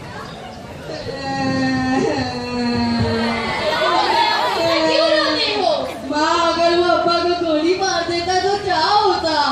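A woman speaks loudly and with animation through a microphone.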